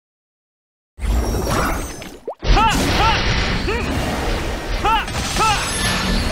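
Game skill effects blast and crackle in rapid bursts.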